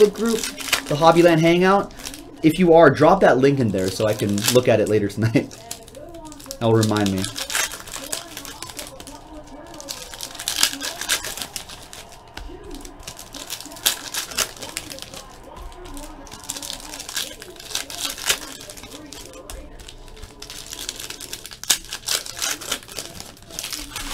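Foil wrappers crinkle and tear as hands open card packs.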